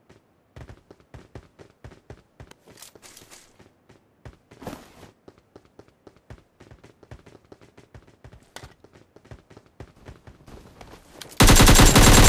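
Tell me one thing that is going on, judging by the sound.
Footsteps run over a hard surface.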